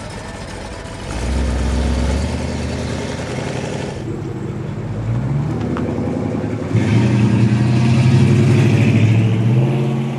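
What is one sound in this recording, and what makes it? A car engine revs loudly and roars away.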